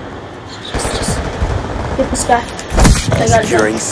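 Gunshots fire in a quick burst.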